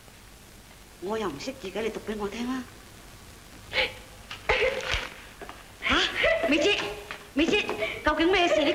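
A middle-aged woman speaks in a worried tone.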